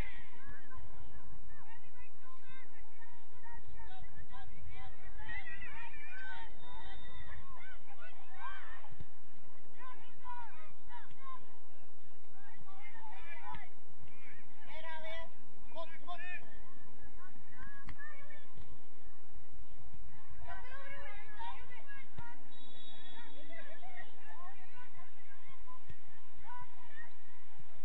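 Young female players shout and call out across an open field.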